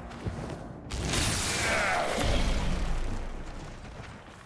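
A loud magical blast whooshes and rumbles.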